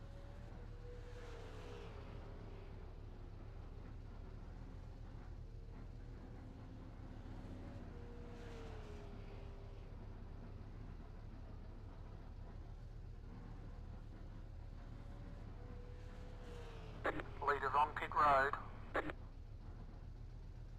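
A racing car engine idles with a low, steady rumble.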